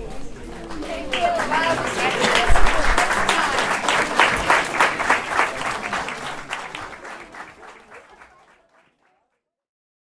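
An audience applauds and cheers in a hall, then fades out.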